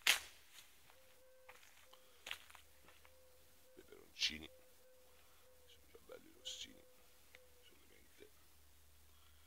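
Leaves rustle and brush close by.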